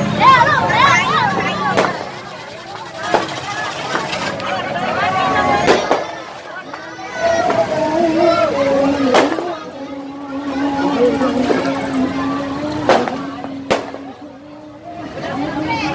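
A crowd of women and girls sings and chants loudly nearby.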